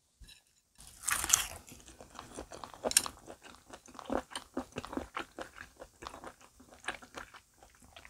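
A young woman chews and crunches food loudly close to a microphone.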